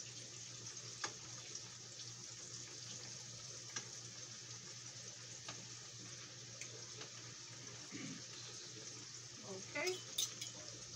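Utensils clink lightly against pots.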